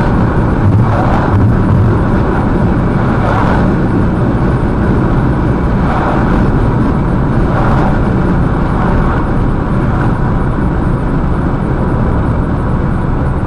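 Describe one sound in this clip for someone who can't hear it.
A car's engine hums steadily as its tyres roll over a highway.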